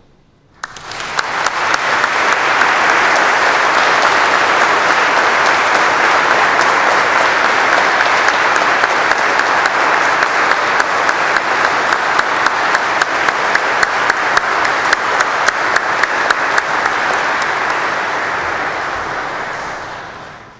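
A crowd applauds loudly in a large echoing hall.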